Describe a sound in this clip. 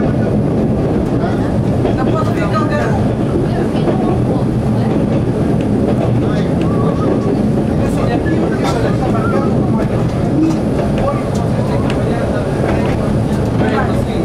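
Train wheels rattle and squeal on the rails.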